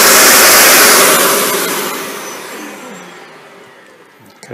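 A vacuum cleaner motor winds down and falls silent.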